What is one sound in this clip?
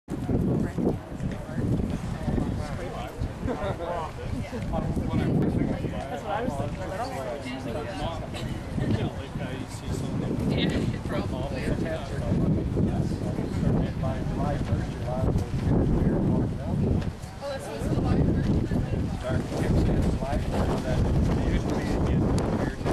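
Wind blusters outdoors, rumbling against the microphone.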